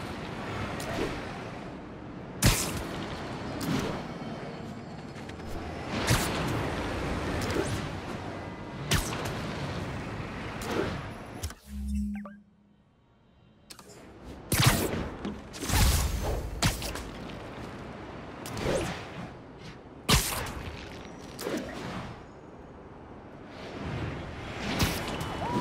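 Wind rushes loudly past during fast swinging through the air.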